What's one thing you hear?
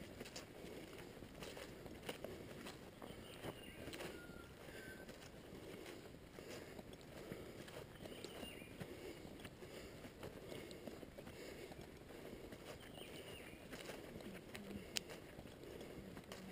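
Footsteps swish through wet grass at a steady walking pace.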